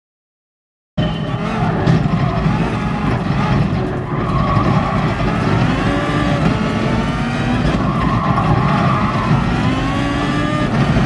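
A race car engine roars at high speed, its pitch rising and falling with gear changes.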